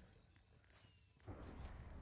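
A creature in a video game takes a blow and dies with a crunch.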